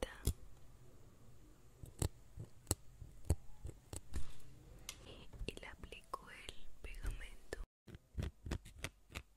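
Small plastic and metal objects tap and click close to a microphone.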